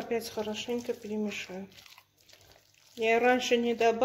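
Food mixture squelches softly as a hand kneads it in a bowl.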